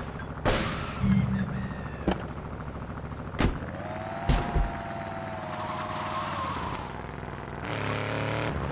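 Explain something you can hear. A car engine runs and revs as the car drives off.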